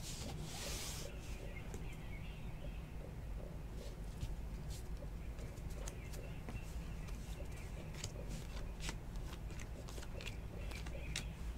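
Trading cards flick and slide softly against each other.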